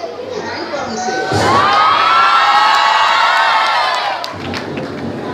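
Audience members cheer and shriek loudly.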